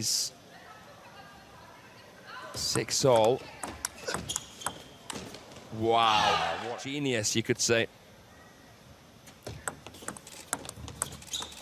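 A table tennis ball clicks back and forth against paddles and the table.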